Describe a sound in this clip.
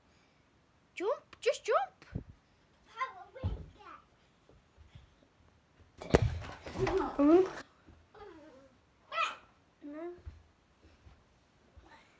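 A young child chatters and squeals excitedly close by.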